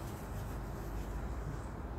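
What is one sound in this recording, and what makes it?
An eraser wipes across a whiteboard.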